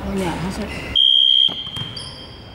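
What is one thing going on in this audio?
A referee blows a short, loud whistle.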